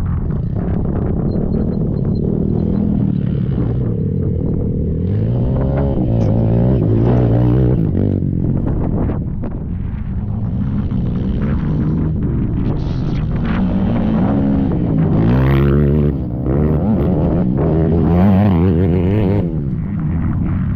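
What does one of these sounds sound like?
A quad bike engine revs loudly as it races past over dirt.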